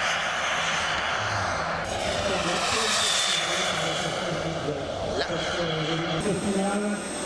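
A model jet engine roars steadily as it flies overhead.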